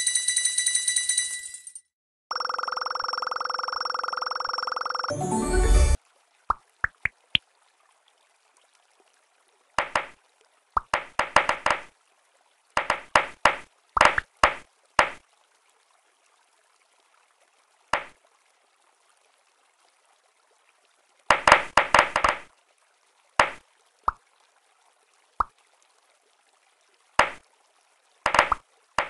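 Electronic game sounds chime and pop in short bursts.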